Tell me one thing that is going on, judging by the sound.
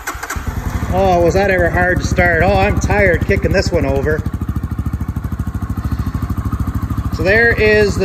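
A motorcycle engine revs up and down in short bursts.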